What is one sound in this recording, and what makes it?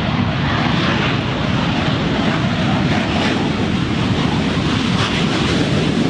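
An aircraft engine roars steadily close by.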